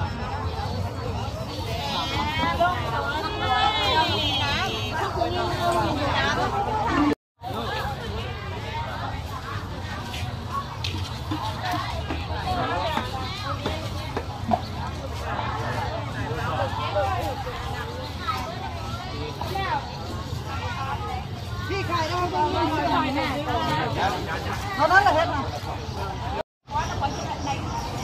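A busy crowd of men and women chatters all around, close by and in the distance.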